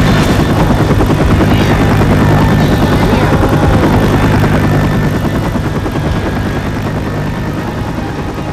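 A helicopter's rotor thumps loudly overhead and slowly moves away.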